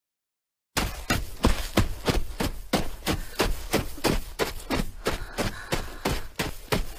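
Footsteps crunch steadily in snow.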